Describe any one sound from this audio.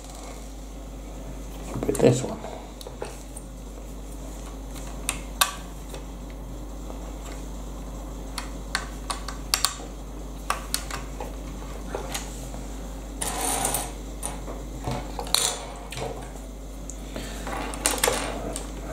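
Plastic toy bricks click and snap as they are pressed together.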